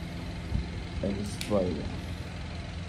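A man murmurs briefly close by.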